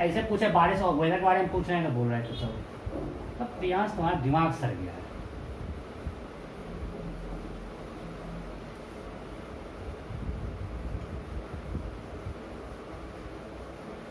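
A whiteboard eraser rubs across the board.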